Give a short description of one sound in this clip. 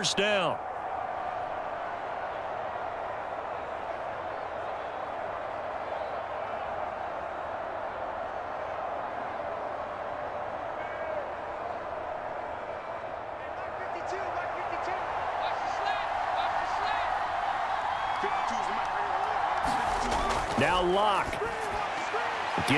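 A large stadium crowd roars and cheers steadily, growing louder later on.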